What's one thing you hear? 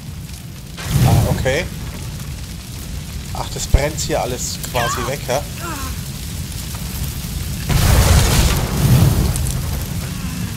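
A flamethrower blasts out bursts of fire.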